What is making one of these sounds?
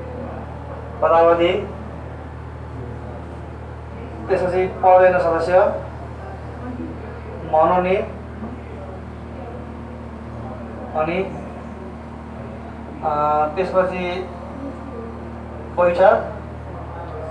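A man speaks in short bursts, calmly, a little way off.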